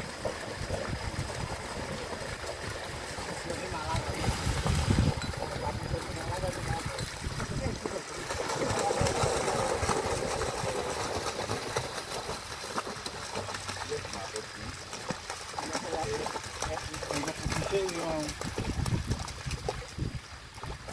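Water pours from a barrel and splashes into a pond.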